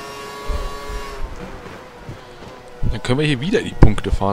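A racing car engine drops in pitch as the car slows for a corner.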